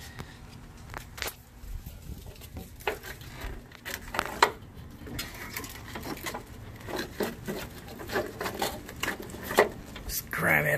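Plastic wiring loom rustles and taps as a hand handles it.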